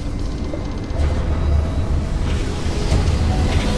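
A deep rumble swells as a spaceship charges for a jump.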